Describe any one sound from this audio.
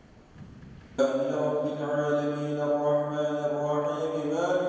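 A man chants loudly through a loudspeaker in a large echoing hall.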